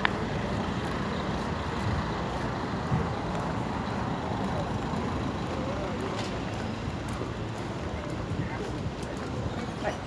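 Traffic rumbles steadily along a street outdoors.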